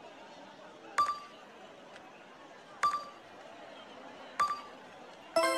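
A menu cursor clicks as a choice is selected.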